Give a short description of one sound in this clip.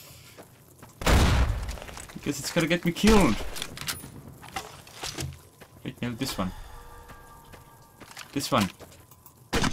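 A shotgun fires several loud shots.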